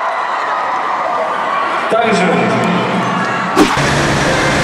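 A large crowd cheers and shouts in a huge echoing arena.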